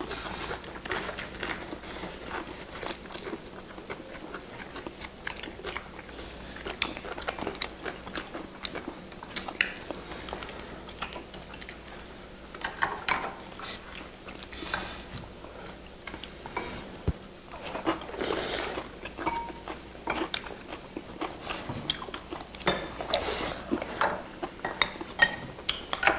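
Chopsticks click against dishes.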